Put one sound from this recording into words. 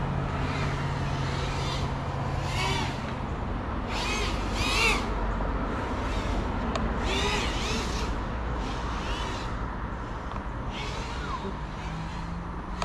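A small drone's propellers buzz and whine, rising and falling in pitch as it races around.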